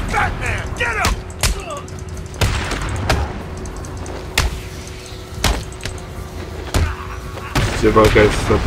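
Punches land with heavy, sharp thuds in a brawl.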